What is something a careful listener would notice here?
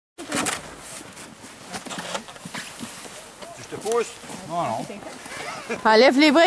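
Boots crunch on packed snow.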